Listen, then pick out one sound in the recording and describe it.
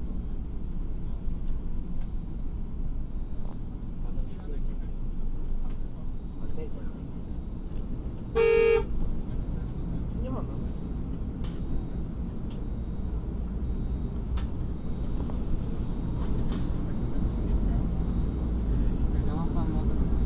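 A bus engine rumbles low and steady while driving.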